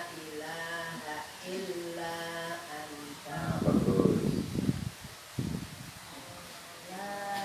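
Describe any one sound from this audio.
A man speaks calmly to a group, heard outdoors at a distance.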